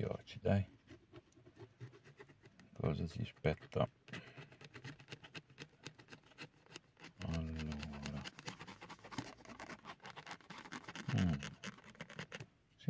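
A coin scrapes rapidly across a scratch card.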